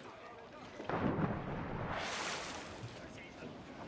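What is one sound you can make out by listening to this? Water splashes as a body plunges in.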